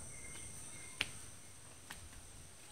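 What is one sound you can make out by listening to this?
Footsteps scuff on a dirt path.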